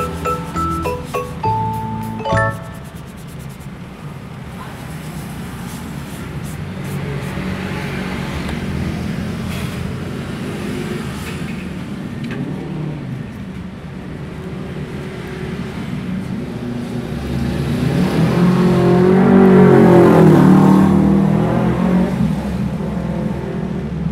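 A cloth rubs and squeaks against a plastic phone case.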